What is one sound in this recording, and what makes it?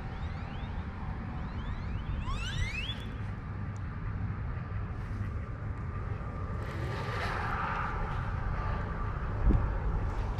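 A fishing reel whirs as its line is wound in.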